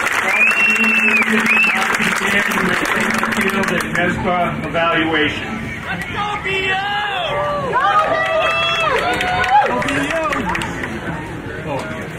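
A marching band plays loud brass and drums outdoors.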